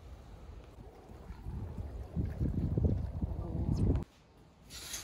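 Wind rumbles outdoors by open water.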